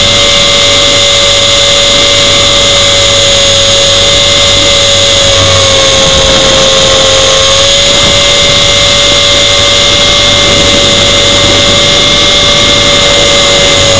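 A drone's motors whine loudly and steadily close by, with slight changes in pitch.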